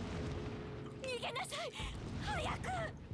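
A woman shouts urgently in alarm.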